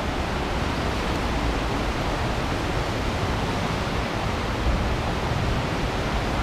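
Water rushes and roars.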